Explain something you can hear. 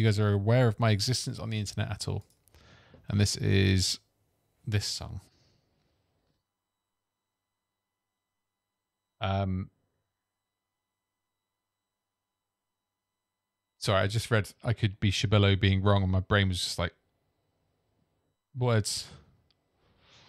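A man speaks calmly and close into a microphone, in bursts with pauses.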